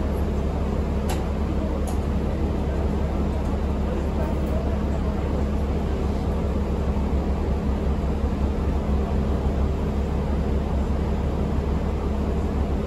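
A bus engine hums low and steady as the bus drives.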